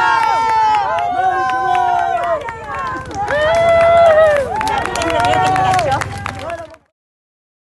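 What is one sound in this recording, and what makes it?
A crowd of men and women chants loudly outdoors.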